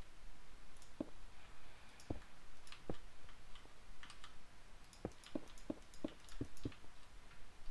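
Stone blocks are set down with short, dull knocks.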